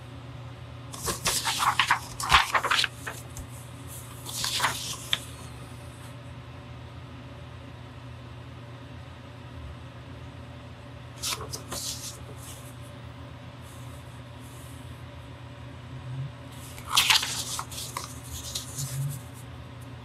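Paper rustles as a sheet is turned and shifted.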